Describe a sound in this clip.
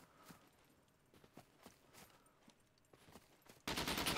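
Footsteps rustle through low undergrowth.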